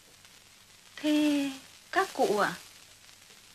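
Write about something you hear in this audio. A young woman speaks softly nearby.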